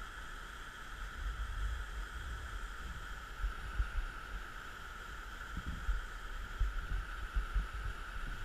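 Muddy water rushes and pours steadily down a rock chute.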